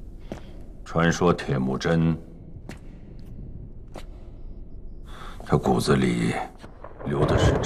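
A woman speaks quietly and gravely.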